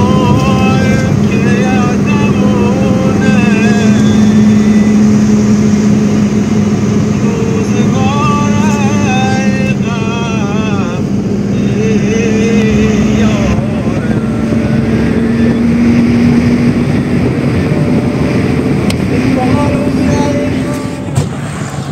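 Tyres roar on asphalt, heard from inside a moving car.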